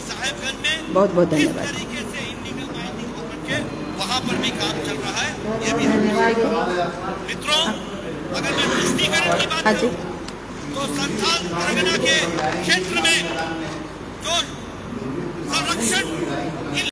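A woman speaks steadily through microphones.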